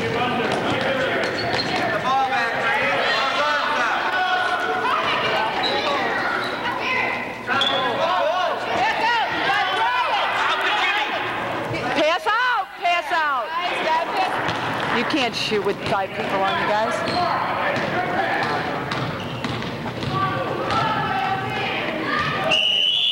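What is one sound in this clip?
A crowd of children and adults shout and cheer in an echoing gym.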